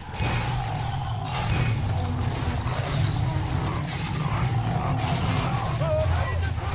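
Game weapons fire and clash in a noisy battle.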